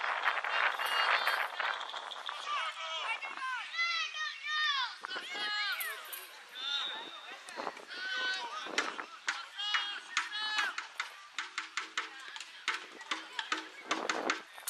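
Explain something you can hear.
Children shout and call out to each other across an open field.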